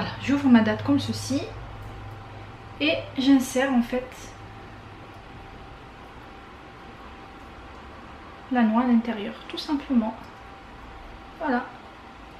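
Fingers peel a cracked eggshell with faint crackling.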